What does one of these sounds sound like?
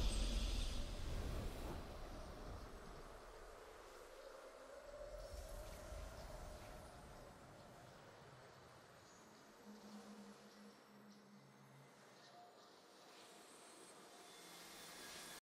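A triumphant game victory fanfare plays and slowly fades.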